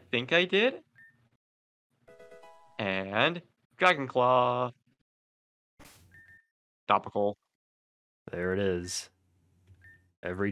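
Soft electronic beeps sound.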